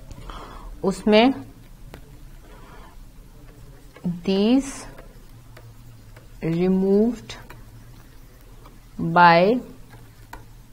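A young woman speaks calmly into a close microphone, in short phrases with pauses.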